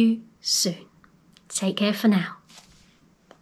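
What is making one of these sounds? A young woman speaks and laughs softly close to a microphone.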